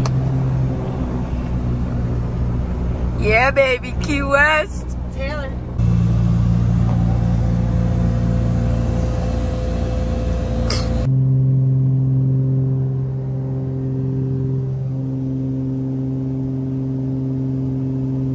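Propeller engines drone loudly and steadily inside a small aircraft cabin.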